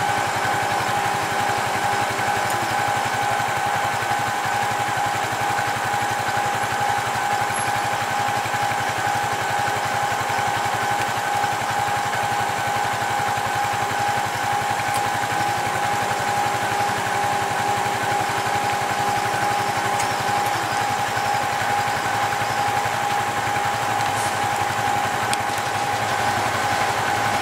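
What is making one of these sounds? A vehicle engine hums steadily nearby.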